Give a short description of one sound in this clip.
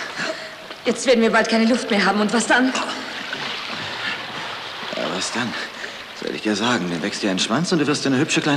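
A man cries out and groans loudly, close by.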